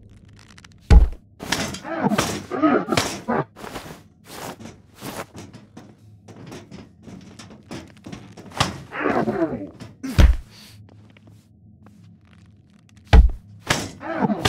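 Heavy blows thud and crack against a metal robot.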